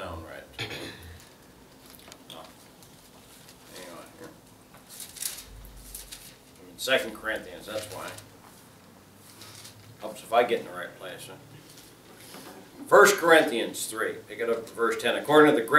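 A middle-aged man speaks slowly and deliberately, with pauses.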